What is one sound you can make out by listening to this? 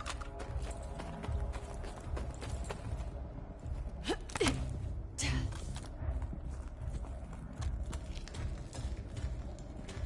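Footsteps crunch and thud steadily underfoot.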